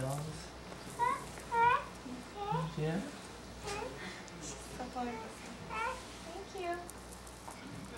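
A woman speaks close by in a high, playful sing-song voice.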